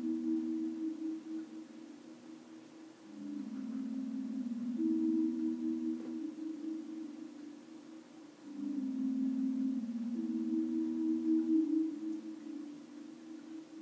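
A small dog whines softly in its sleep.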